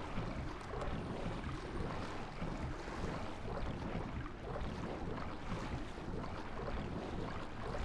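Footsteps tread slowly.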